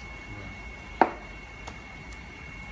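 A cleaver chops sharply into fish on a wooden block.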